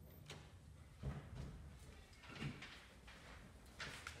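Footsteps thud across a floor.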